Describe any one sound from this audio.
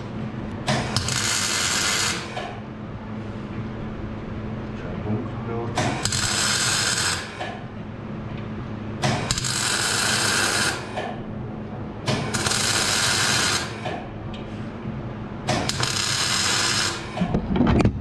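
An arc welder crackles and hisses in short bursts.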